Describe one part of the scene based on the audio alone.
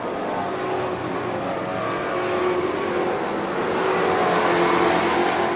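A race car engine roars loudly at high revs.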